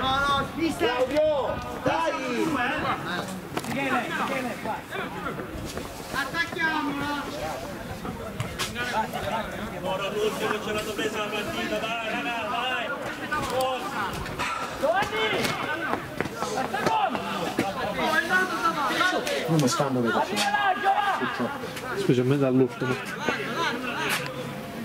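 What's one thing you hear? Young men call out to each other across an open field.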